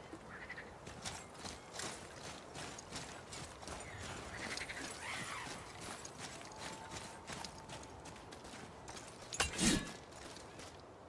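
Heavy footsteps crunch on gravel.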